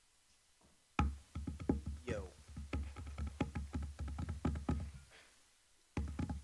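Footsteps thud across the floor.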